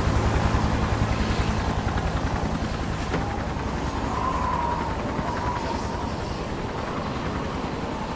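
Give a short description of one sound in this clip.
Helicopter rotors thump steadily and loudly close by.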